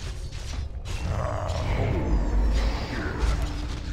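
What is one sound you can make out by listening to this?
A fiery spell bursts with a loud whoosh.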